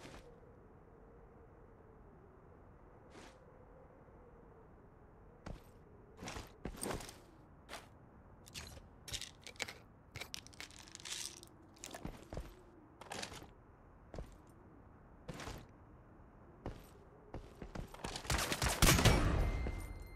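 Gunshots crack from a rifle in short bursts.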